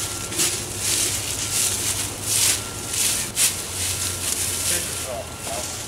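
Dry leaves crunch underfoot as people walk.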